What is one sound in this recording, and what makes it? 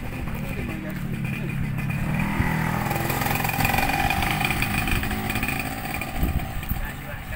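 A motorcycle engine rumbles as it rides past close by.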